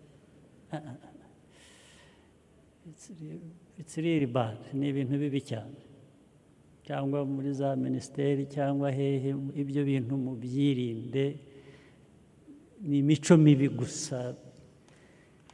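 An elderly man speaks with animation into a microphone over loudspeakers.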